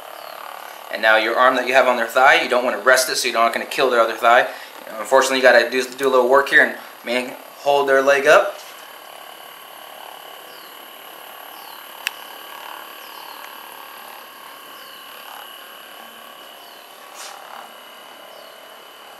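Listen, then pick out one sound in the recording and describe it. A massage gun whirs steadily as it pulses against a leg.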